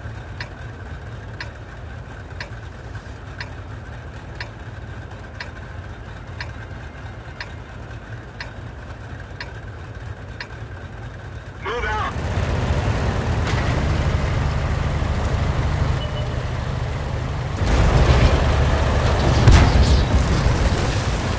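A tank engine rumbles low, then roars louder as the tank drives off.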